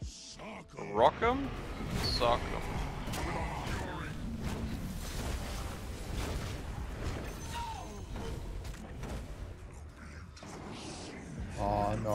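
Magic spell effects whoosh and crackle during a video game battle.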